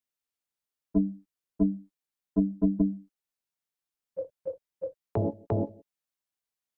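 Menu selection blips and clicks sound in short beeps.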